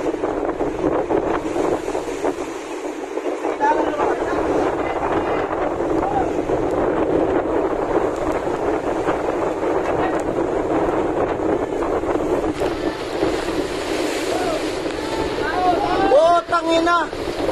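Water churns and splashes against a boat's hull.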